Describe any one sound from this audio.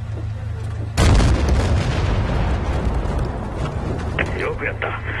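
An explosion booms and rumbles on.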